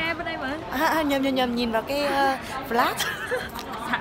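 A young woman talks excitedly close to the microphone.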